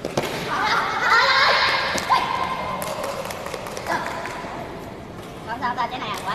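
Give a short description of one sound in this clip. Young men shout and call out across an echoing sports hall.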